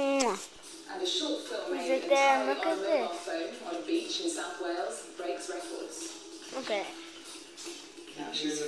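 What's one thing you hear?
A woman speaks calmly through a television loudspeaker.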